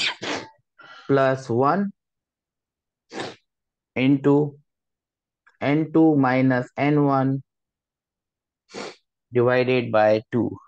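A man explains calmly, close to a microphone, with pauses between phrases.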